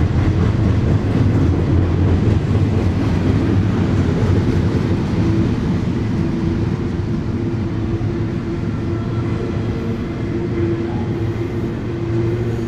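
A long freight train rumbles past on the rails nearby.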